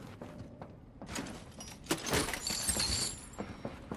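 A chest creaks open with a bright, shimmering chime.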